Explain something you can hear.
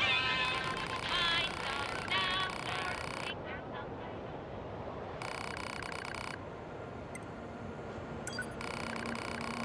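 Rapid electronic shots fire in quick bursts.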